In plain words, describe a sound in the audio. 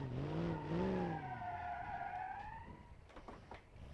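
Tyres screech as a car slides.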